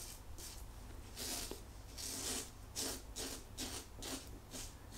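A double-edge safety razor scrapes in short strokes through lathered stubble.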